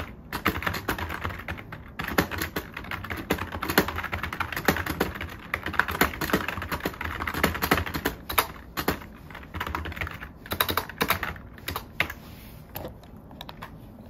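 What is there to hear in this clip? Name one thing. Fingers type quickly on a keyboard, with keys clicking.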